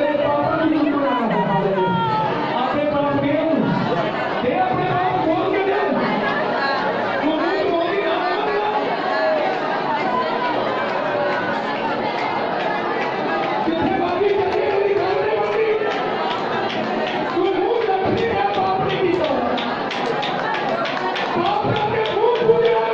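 A crowd of women sings and prays loudly together in an echoing hall.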